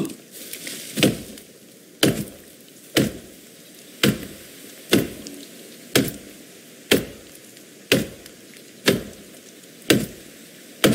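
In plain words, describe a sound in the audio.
An axe chops steadily into a tree trunk with regular thuds.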